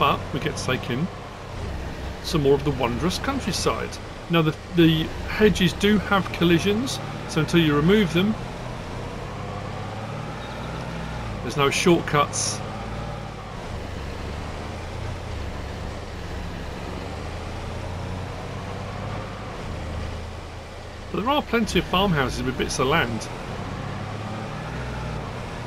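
A vehicle engine hums low and steadily.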